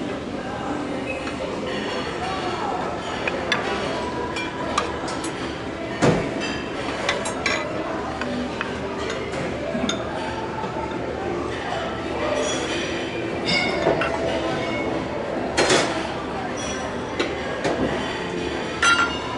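Metal serving tongs and spoons clink against metal trays.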